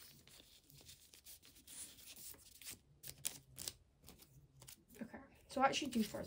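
Cards slide softly into plastic sleeves.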